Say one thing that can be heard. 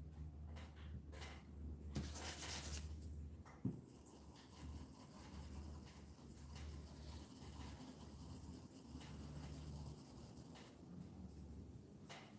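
A paintbrush taps against a small paint bottle.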